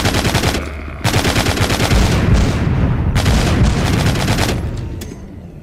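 A heavy machine gun fires rapid bursts of loud shots.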